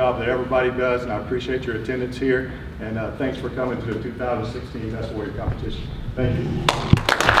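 A man speaks loudly to an audience in a large room.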